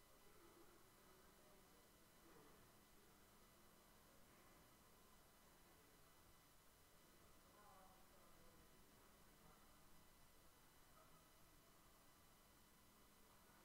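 Playing cards are shuffled softly by hand.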